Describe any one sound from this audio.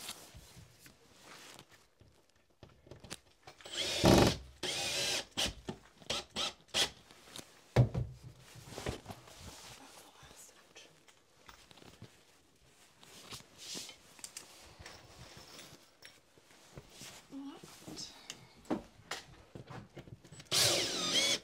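Tools knock and scrape against a wall.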